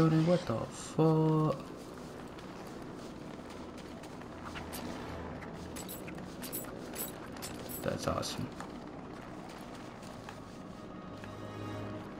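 Footsteps patter quickly on a hard stone floor.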